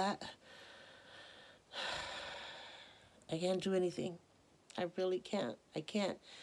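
A woman speaks softly and close by.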